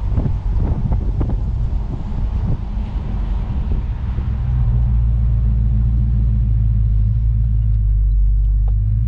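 Tyres roll over pavement.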